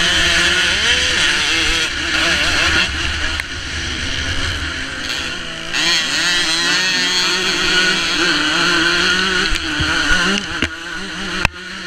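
Another motorcycle engine whines a short way ahead.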